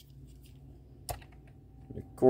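A small toy truck clicks down onto a hard plastic stand.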